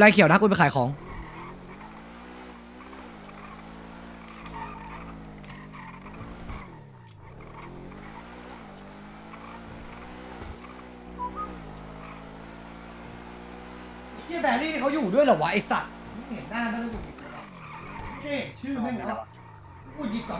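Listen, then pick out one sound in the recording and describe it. A sports car engine hums and revs, rising and falling as it speeds up and slows down.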